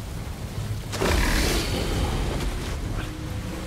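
A large wave crashes and splashes nearby.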